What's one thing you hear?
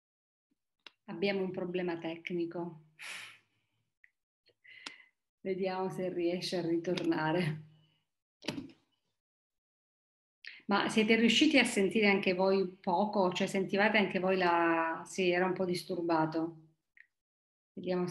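A middle-aged woman speaks calmly and warmly, close to a microphone.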